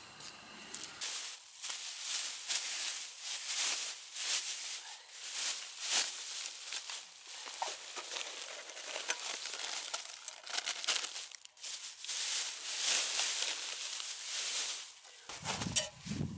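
A plastic bag rustles and crinkles up close.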